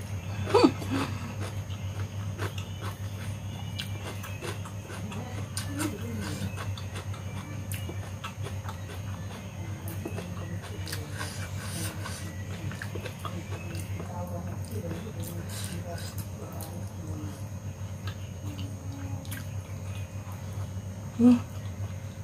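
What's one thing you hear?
Fingers rustle and pick through food on a plate.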